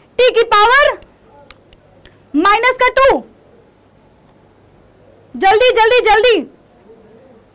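A young woman speaks clearly and with animation into a close microphone, in short bursts.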